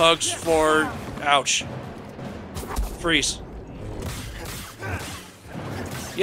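Laser blasts strike and crackle with sparks.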